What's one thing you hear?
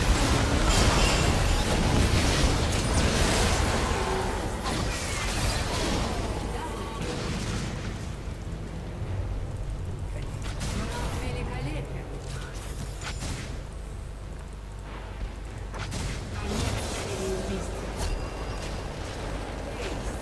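Video game spells and hits crackle and boom.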